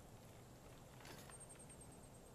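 A bow shifts with a short clack.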